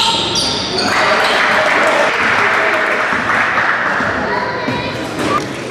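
A crowd cheers loudly in an echoing gym.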